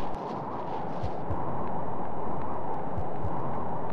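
Footsteps thud quickly on a hard floor.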